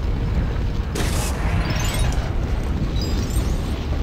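An explosion bursts loudly.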